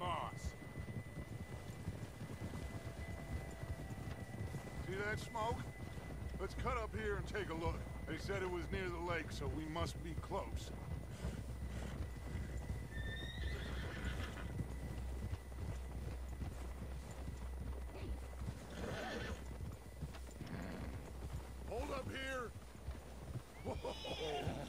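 Horses' hooves crunch steadily through deep snow.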